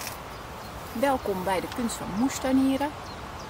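A woman speaks close to the microphone, calmly and warmly.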